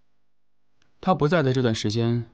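A second man answers in a low, calm voice.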